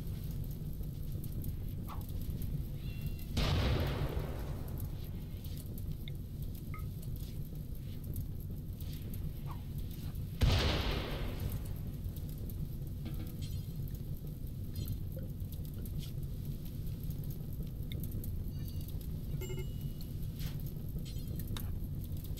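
Fire burns with a steady low roar.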